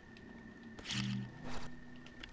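A short magical whoosh rings out.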